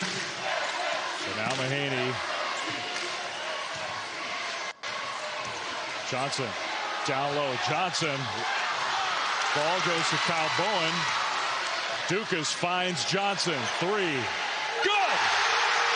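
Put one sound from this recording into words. A large indoor crowd murmurs steadily.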